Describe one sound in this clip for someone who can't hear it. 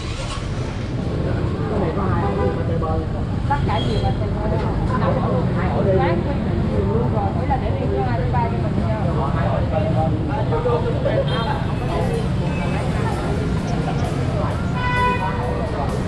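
A crowd of people talk outdoors near street traffic.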